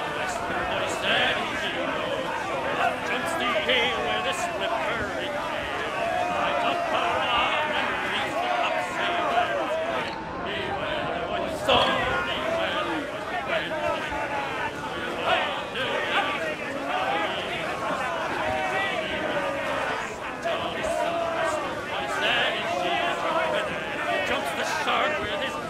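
Waves wash against the hull of a sailing ship.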